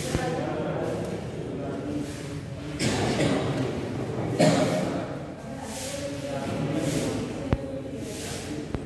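A man speaks calmly in a room.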